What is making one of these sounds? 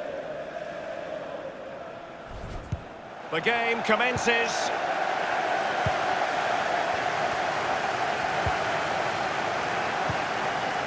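A stadium crowd roars and cheers steadily, swelling louder partway through.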